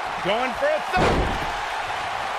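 A heavy body slams onto a wrestling mat with a thud.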